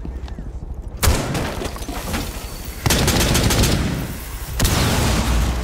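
A rifle fires loud sharp shots.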